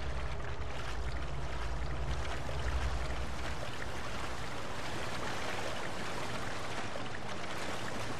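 Water splashes as a man wades through it.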